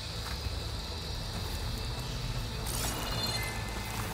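Footsteps rustle through leafy plants.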